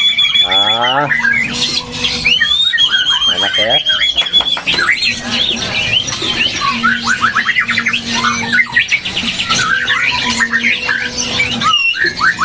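Several caged songbirds sing loud, varied, whistling and chattering songs close by.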